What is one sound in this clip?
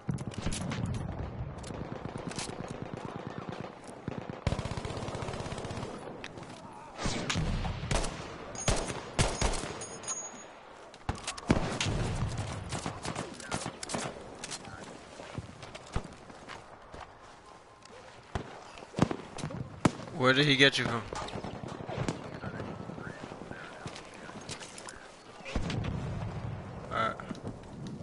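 Gunshots crack repeatedly, some close and some farther off.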